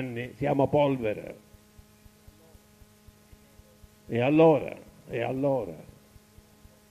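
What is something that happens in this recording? An elderly man speaks calmly, in short phrases, through a microphone.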